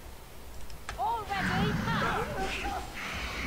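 A fiery blast roars in a game battle.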